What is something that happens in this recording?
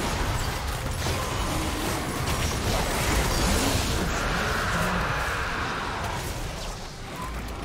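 Game spell effects crackle and boom during a fierce battle.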